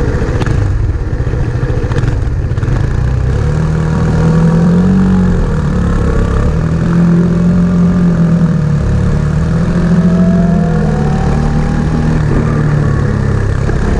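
Motorcycle engines hum and rev close by.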